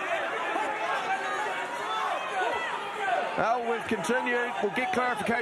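A crowd shouts and cheers loudly in a large hall.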